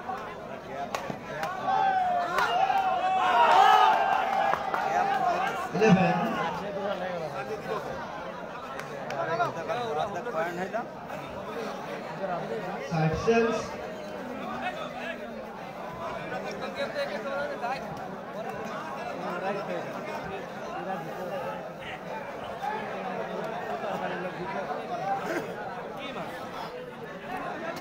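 A crowd of young men shouts and chatters outdoors.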